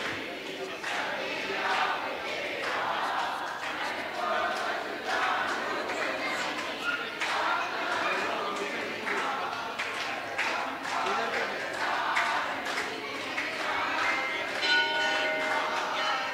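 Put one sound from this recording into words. A crowd of men and women murmurs and chants together.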